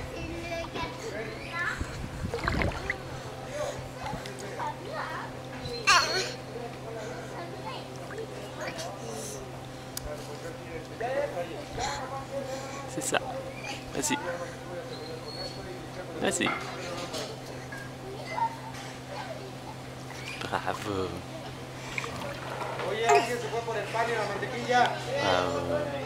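A toddler babbles and coos close by.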